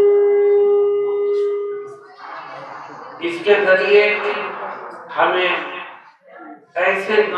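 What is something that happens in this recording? An elderly man speaks with feeling into a microphone, heard through a loudspeaker.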